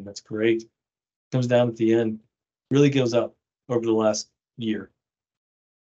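A man speaks calmly through a microphone on an online call.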